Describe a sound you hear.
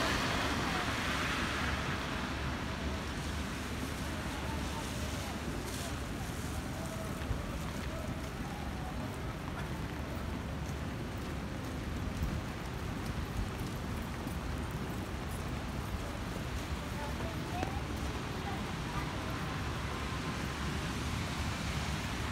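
Rain falls steadily on wet pavement outdoors.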